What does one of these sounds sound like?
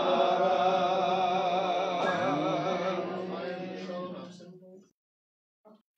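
An elderly man chants loudly in a long, wavering held tone that fades away.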